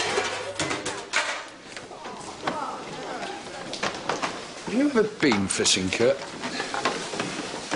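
Plates and cutlery clatter.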